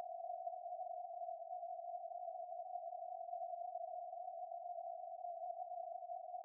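A shortwave radio receiver gives off a steady, narrow hiss of static.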